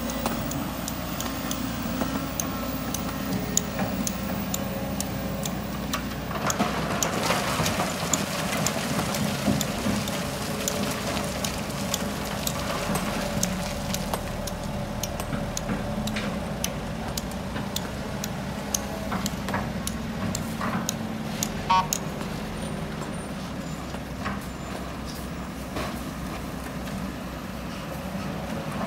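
A diesel excavator engine rumbles steadily.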